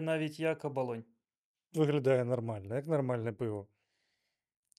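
A man speaks calmly and cheerfully into a close microphone.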